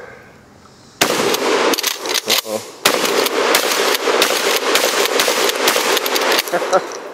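A shotgun fires loud shots in quick succession outdoors.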